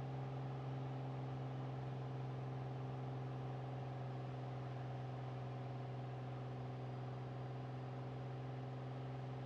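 A small propeller plane's engine drones steadily inside the cockpit.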